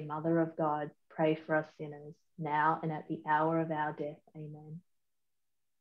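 A young woman speaks calmly, heard through an online call.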